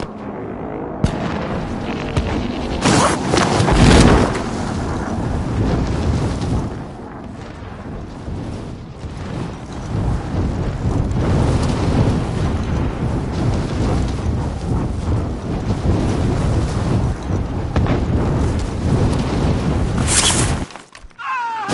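Wind rushes loudly past a falling parachutist.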